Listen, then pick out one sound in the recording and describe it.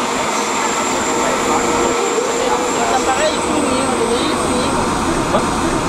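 A tram engine hums as the tram rolls by.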